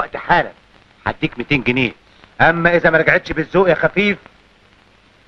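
A young man speaks forcefully and close by.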